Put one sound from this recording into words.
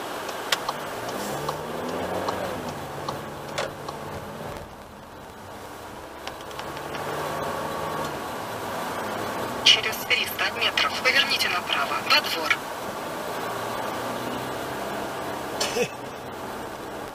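A car engine idles and then revs up as the car pulls away.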